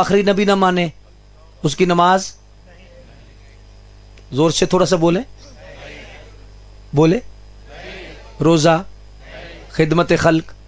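A man speaks with passion into a microphone over a loudspeaker, in short bursts with pauses.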